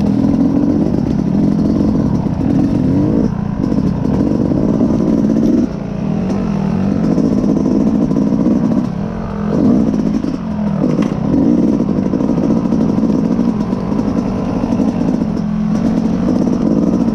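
A dirt bike engine drones loudly and changes pitch as the rider works the throttle.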